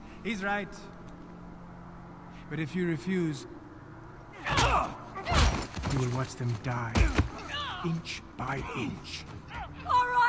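A man speaks in a low, threatening voice.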